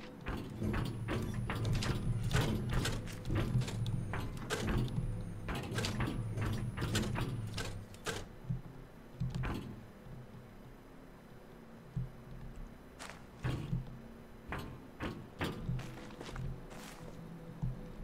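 Footsteps tap across hard glass panels at a walking pace.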